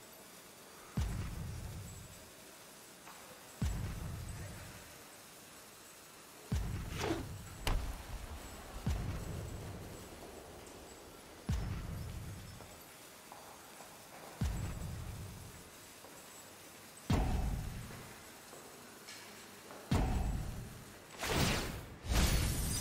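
Game sound effects thump with deep booms every few seconds.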